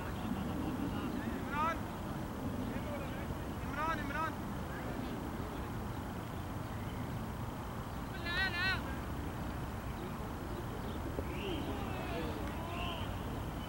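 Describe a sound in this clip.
Men talk quietly in the distance, outdoors.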